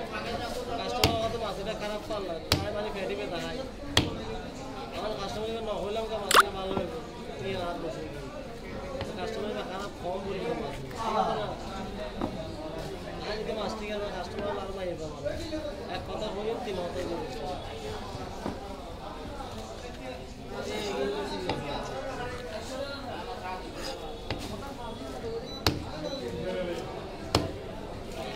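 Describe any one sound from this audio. A cleaver chops sharply through fish onto a wooden block.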